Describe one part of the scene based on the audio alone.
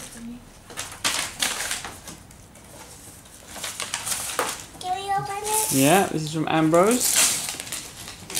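Wrapping paper rustles and crinkles.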